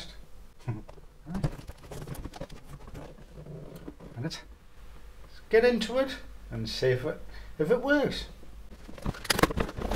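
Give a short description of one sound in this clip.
A cardboard box is set down on a hard surface.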